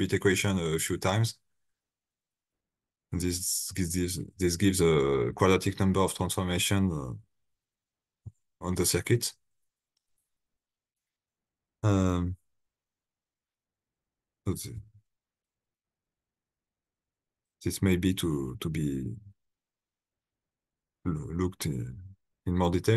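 A young man speaks calmly over an online call, in short bursts with pauses.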